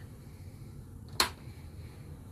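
A door latch clicks as a door is pushed open.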